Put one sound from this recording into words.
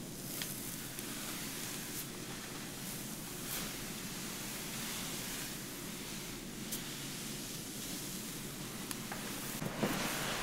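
Fingers rustle softly through hair.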